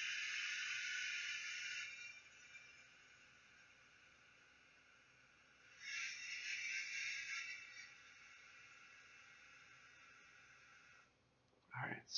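Gas hisses steadily from a pressurised can through a hose.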